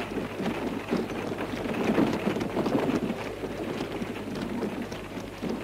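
Horse hooves clop on a dirt street.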